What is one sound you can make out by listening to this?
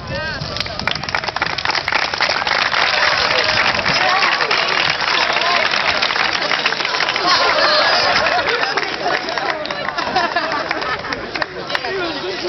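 A crowd of young people claps and cheers loudly.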